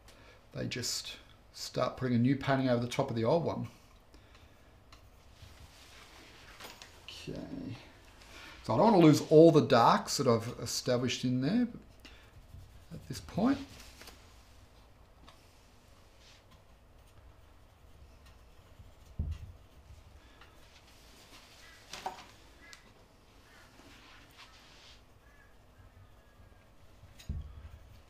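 A palette knife scrapes softly across a canvas.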